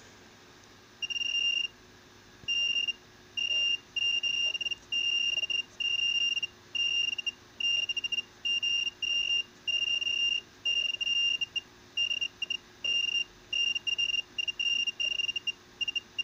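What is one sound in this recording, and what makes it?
A high-pitched electrical whine sounds in short, repeated bursts from a circuit.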